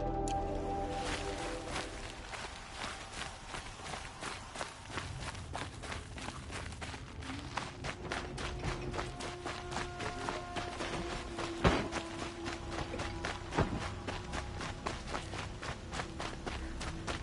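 Quick footsteps run across a stone floor.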